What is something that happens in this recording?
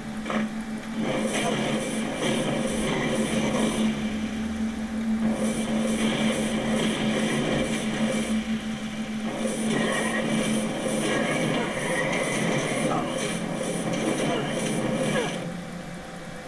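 Fiery spells crackle and burst rapidly during a fight.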